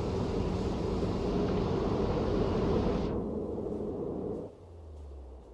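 Waves wash steadily against a ship at sea.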